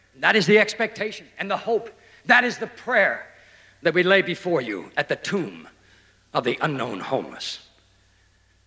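A middle-aged man speaks forcefully into a microphone in a large echoing hall.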